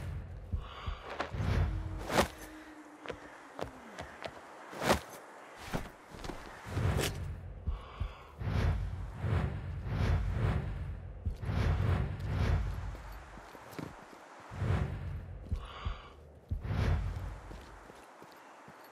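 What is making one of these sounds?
Hands grip and scrape against rock in heavy, muffled thuds.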